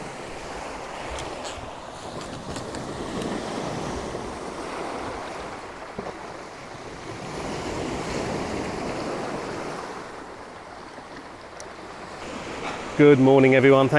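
Waves wash softly onto a shore outdoors.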